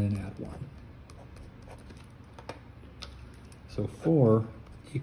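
A felt-tip marker scratches and taps softly on paper.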